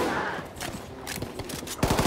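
A gun's magazine clicks as it is reloaded.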